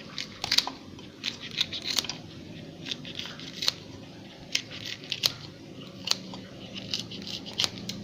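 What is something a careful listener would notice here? Scissors snip through a chilli pepper.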